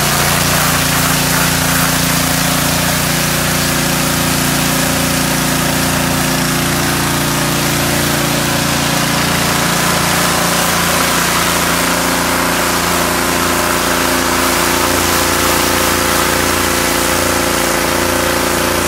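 A pressure washer engine drones steadily nearby.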